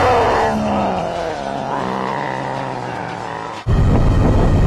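A creature groans low and drawn out.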